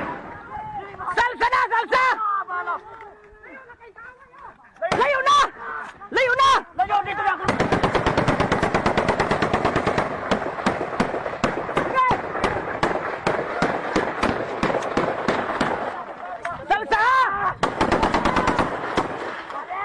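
Men shout loudly outdoors.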